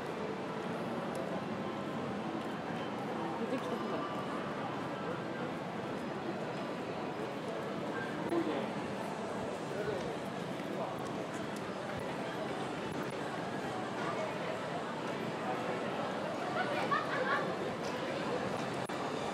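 Footsteps of people walking on pavement fill a busy street outdoors.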